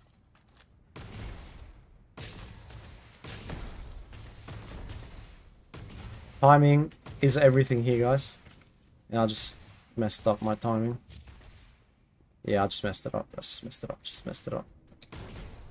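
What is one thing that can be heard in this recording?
A futuristic gun fires several shots with sharp electronic bursts.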